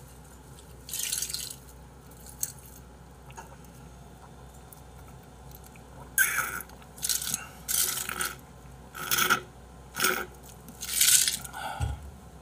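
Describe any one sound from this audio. A man gulps and slurps loudly from a bottle, in short bursts.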